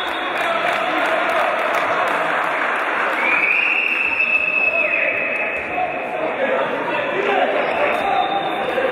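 A handball bounces on a hard court.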